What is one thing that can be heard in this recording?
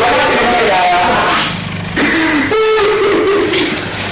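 A man sobs.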